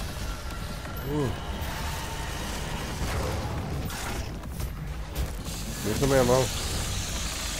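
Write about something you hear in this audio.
A monster roars and snarls.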